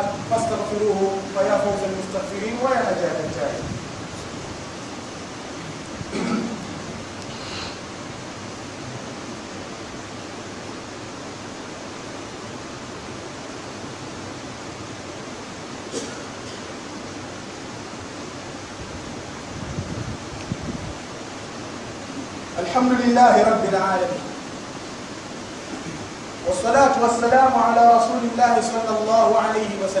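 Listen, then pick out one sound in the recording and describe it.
A young man chants loudly through a microphone in a large echoing hall.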